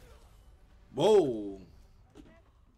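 A young man shouts out loudly once.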